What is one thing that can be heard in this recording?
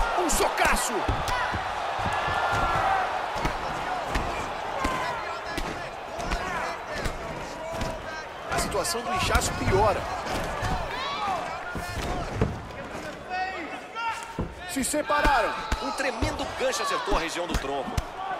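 Punches thud as they land on a body.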